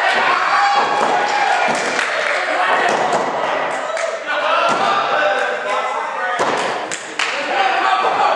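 Wrestlers thud onto a wrestling ring's mat.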